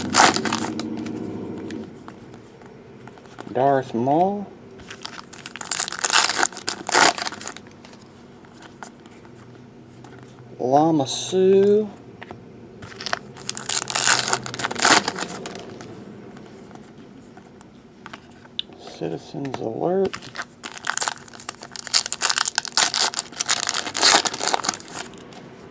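Foil wrappers crinkle and rustle as they are torn open.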